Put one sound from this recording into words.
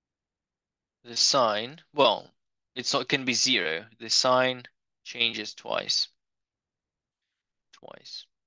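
A man speaks calmly through a microphone, explaining.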